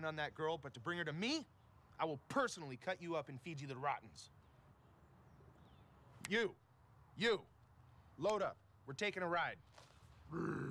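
A man speaks angrily and threateningly up close.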